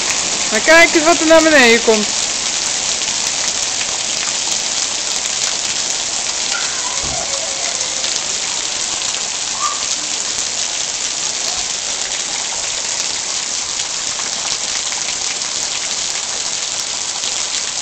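Hail patters and hisses steadily on the ground outdoors.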